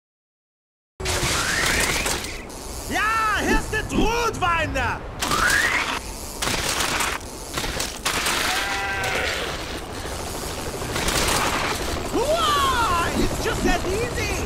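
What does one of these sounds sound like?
A bicycle's tyres rumble and crunch over a rough dirt trail.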